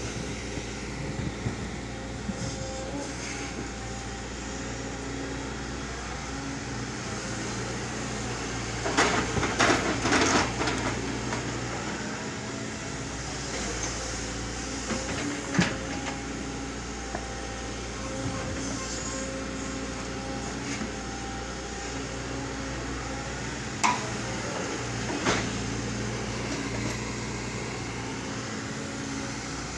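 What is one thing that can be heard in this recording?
An excavator's diesel engine rumbles steadily outdoors.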